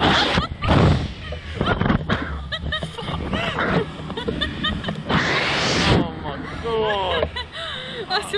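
A young woman laughs and screams loudly close by.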